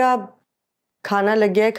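A young woman speaks in a strained, upset voice.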